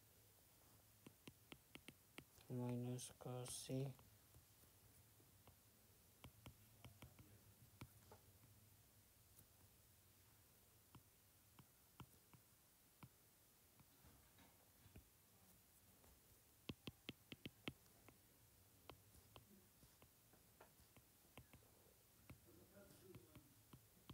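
A stylus taps and scratches on a tablet's glass.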